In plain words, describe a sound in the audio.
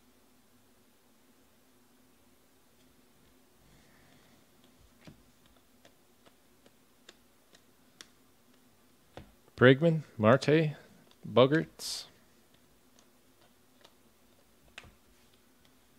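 Trading cards flick and rustle softly as they are sorted by hand.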